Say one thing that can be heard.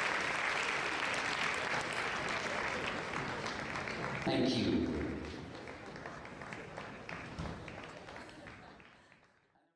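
A large crowd applauds and cheers in a big echoing hall, then the applause fades away.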